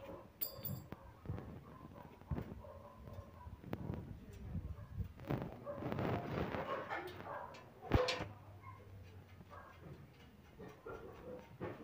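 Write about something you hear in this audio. Metal parts of a bicycle frame clink and tap lightly.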